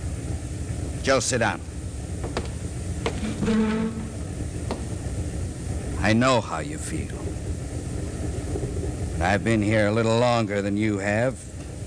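A man reads out lines with expression through an old microphone.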